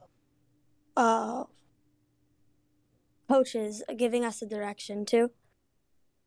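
A teenage boy speaks up close, clearly and with energy.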